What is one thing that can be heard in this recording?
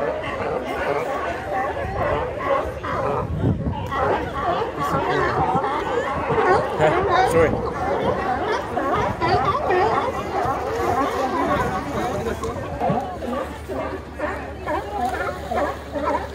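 Many sea lions bark and honk loudly and continuously.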